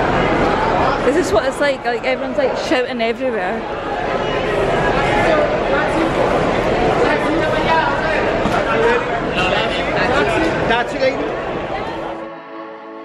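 A crowd of people chatters nearby in a large echoing hall.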